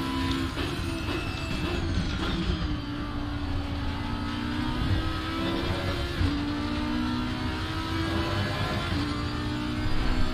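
A racing car engine roars steadily and shifts gears.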